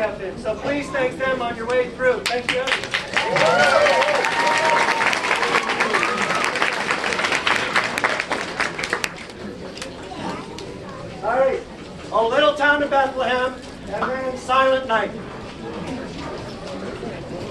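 A man speaks loudly to an audience outdoors, heard through a microphone.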